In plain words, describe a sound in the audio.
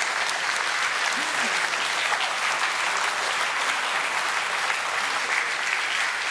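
An audience laughs heartily.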